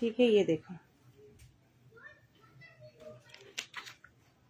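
Cloth rustles softly as it is folded by hand.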